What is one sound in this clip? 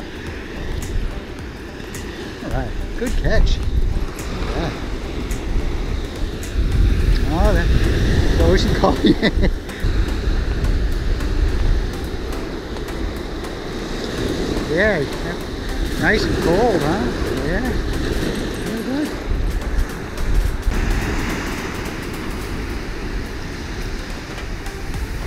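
Waves wash steadily onto a beach.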